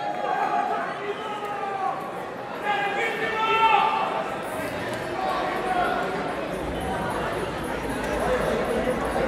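A live rock band plays music in a large echoing hall.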